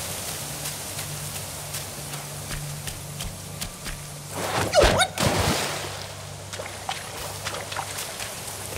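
Footsteps crunch on leaves and undergrowth.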